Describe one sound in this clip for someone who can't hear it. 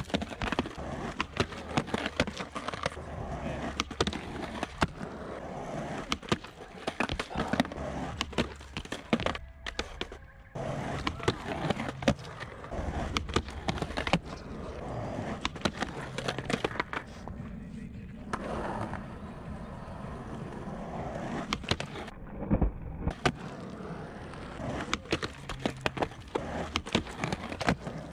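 A skateboard clacks and slaps against concrete and a ledge.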